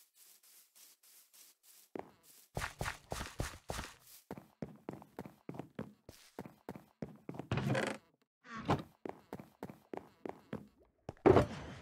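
Footsteps tap quickly across a wooden floor.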